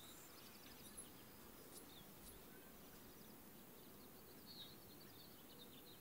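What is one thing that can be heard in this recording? Leafy branches rustle as someone pushes through a bush.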